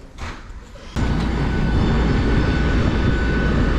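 A jet engine roars loudly nearby.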